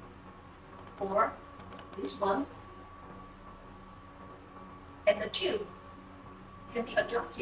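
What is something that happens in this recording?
A woman speaks calmly and clearly in short phrases, close by.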